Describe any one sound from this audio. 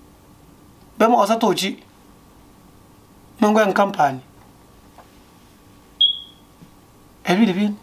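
A man speaks close to a microphone in short, emphatic bursts with pauses.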